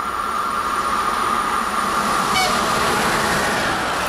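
A locomotive's electric motors whine as the train approaches.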